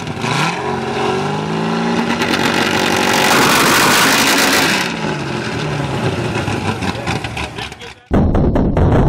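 A sports car engine revs hard, its pitch rising and falling.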